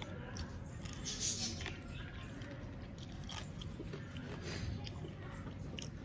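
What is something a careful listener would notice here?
A man chews food noisily up close.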